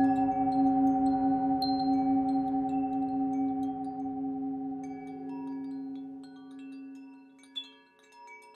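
A singing bowl rings with a deep, steady hum that slowly fades.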